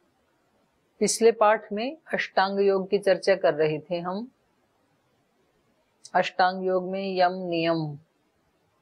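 A middle-aged woman speaks calmly and clearly, close to a microphone.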